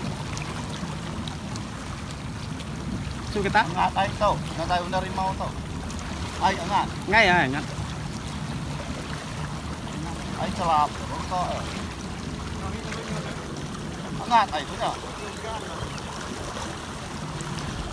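Water laps and splashes gently.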